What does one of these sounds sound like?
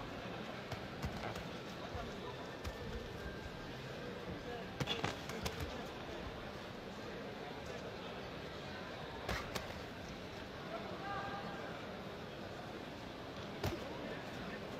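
Boxing gloves thud on a boxer with sharp smacks.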